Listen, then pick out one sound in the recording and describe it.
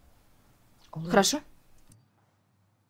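A woman speaks briefly in a low voice, close by.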